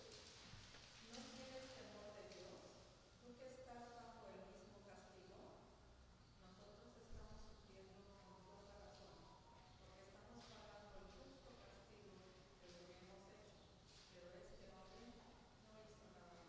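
A woman reads out quietly through a microphone.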